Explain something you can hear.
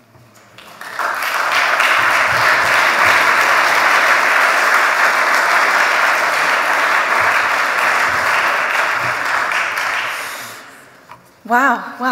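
An audience applauds steadily, then the clapping fades.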